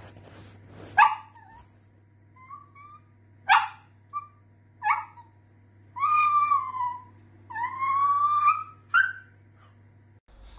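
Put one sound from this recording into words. A small dog barks and whines in short, high bursts.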